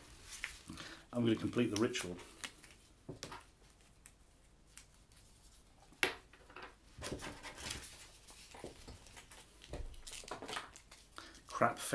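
Paper crinkles as a man unfolds it.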